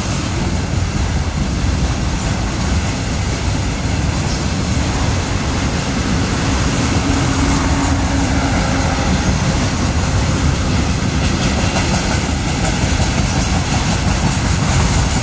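A freight train rumbles and clatters steadily past at close range.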